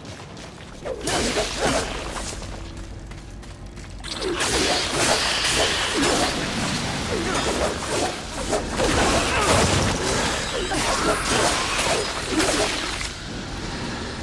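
Whips lash and slash through the air in combat.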